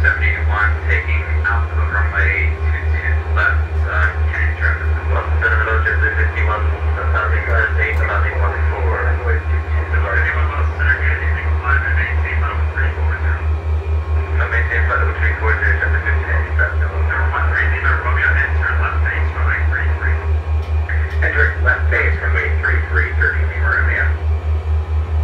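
A jet engine drones steadily through a loudspeaker.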